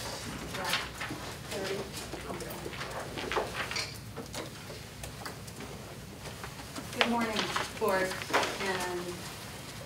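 A woman speaks calmly in a quiet room.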